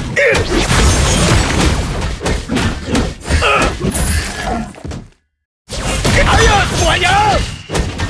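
Game fighting effects clash and burst in quick succession.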